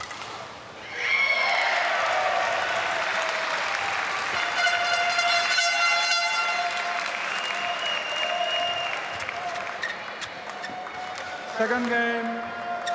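A large crowd claps in an echoing hall.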